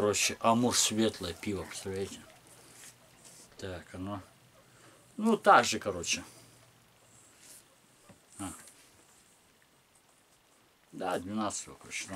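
A middle-aged man talks close to the microphone in a casual, animated way.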